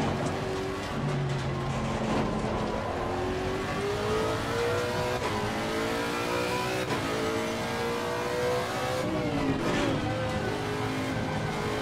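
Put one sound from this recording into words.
A racing car engine roars, rising in pitch and dropping briefly at each gear change.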